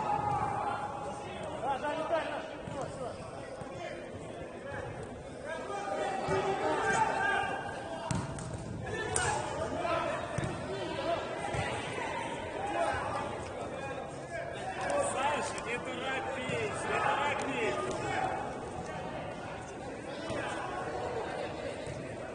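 Men shout to each other across an indoor pitch that echoes.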